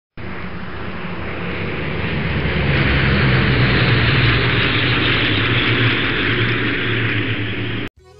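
A single-engine propeller floatplane drones as it flies low overhead, growing louder.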